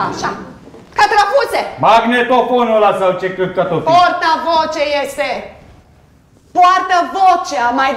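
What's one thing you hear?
A woman speaks loudly through a megaphone.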